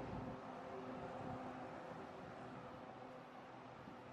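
A bus engine rumbles past.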